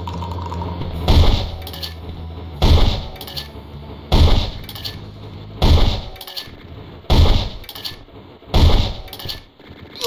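A shotgun fires again and again with loud, booming blasts.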